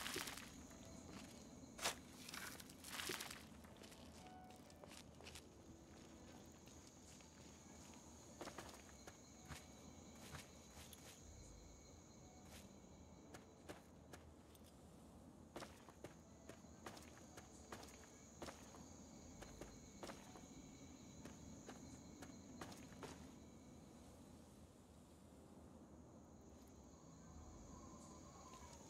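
Footsteps crunch slowly over soft ground.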